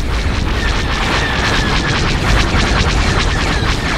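Laser blasts fire in rapid bursts.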